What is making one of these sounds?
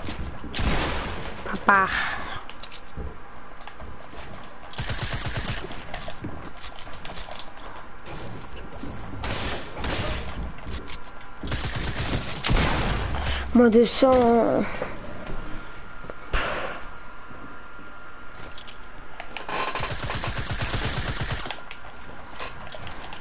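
Wooden building pieces knock and clatter as they snap into place in a video game.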